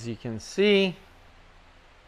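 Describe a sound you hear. A man speaks loudly and briefly, close by.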